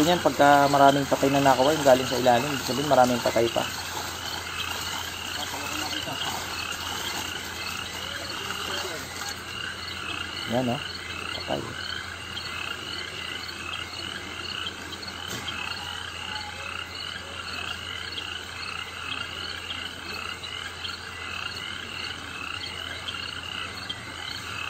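A fishing net rustles as men haul and handle it.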